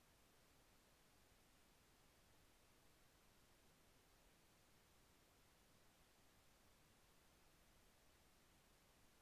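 Television static hisses steadily and faintly.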